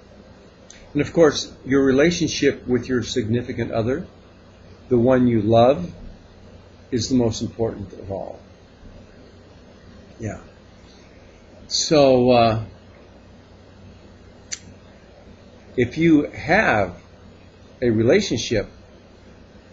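An elderly man speaks calmly and close to a microphone, in short bursts with pauses.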